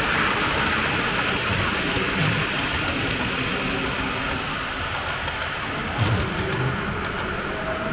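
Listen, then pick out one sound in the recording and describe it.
A model train rumbles and clicks along the track.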